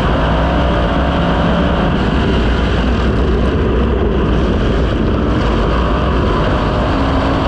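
A race car engine roars loudly and steadily up close.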